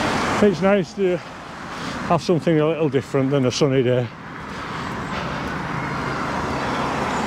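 A car drives past on a wet road nearby.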